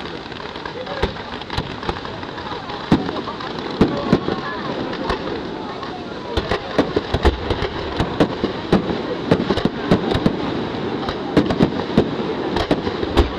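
Fireworks bang and crackle overhead, growing louder and more frequent.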